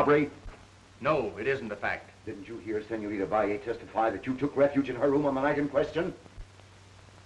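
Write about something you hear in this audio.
A middle-aged woman speaks earnestly, close by.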